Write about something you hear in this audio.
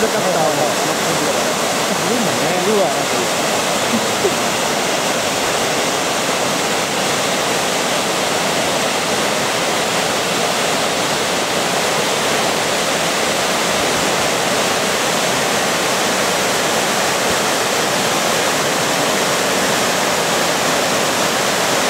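A waterfall roars steadily as water pours over a weir.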